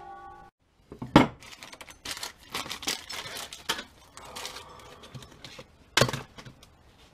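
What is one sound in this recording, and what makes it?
Metal tools clink and clatter on a workbench.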